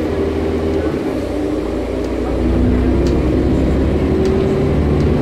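A bus engine hums and drones steadily inside the cabin.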